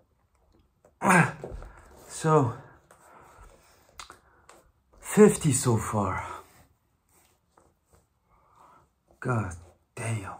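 A young man speaks close by, breathing hard between words.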